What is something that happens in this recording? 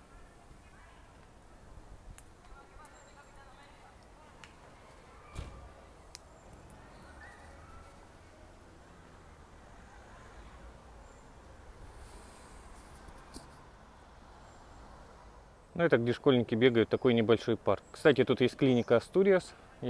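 Leaves rustle softly in a light breeze outdoors.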